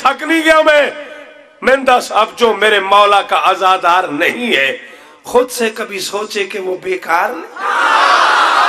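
A man speaks forcefully into a microphone over a loudspeaker.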